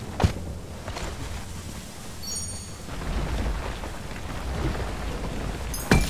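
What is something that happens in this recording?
A heavy gun fires sharp shots.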